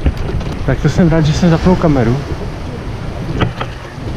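Waves lap gently against a rocky shore.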